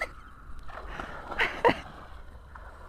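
Water splashes as a swimmer dives under.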